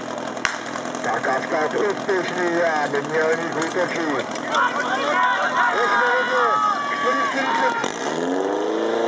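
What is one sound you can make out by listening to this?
A crowd of spectators shouts and cheers.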